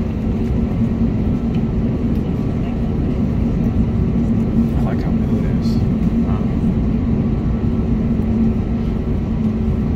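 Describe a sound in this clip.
An airliner's engines hum steadily, heard from inside the cabin.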